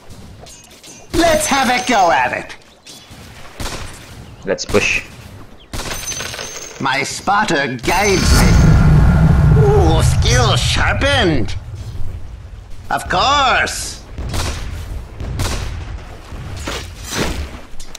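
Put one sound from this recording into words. Weapons clash and strike in quick blows.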